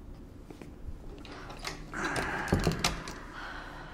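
A man sits down heavily on a chair.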